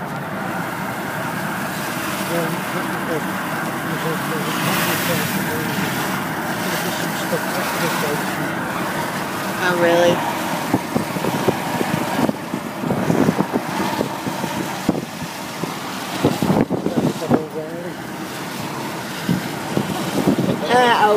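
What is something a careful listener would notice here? A vehicle's engine and tyres rumble steadily as it drives along.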